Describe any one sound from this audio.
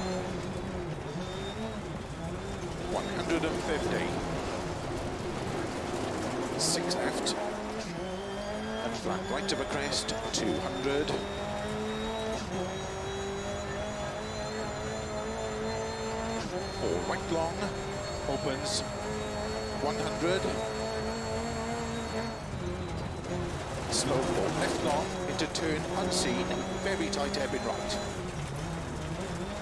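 A rally car engine revs hard and shifts gears.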